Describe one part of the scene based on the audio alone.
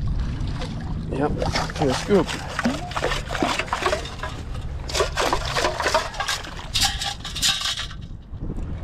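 Water splashes and sloshes as a scoop is dragged through shallow water.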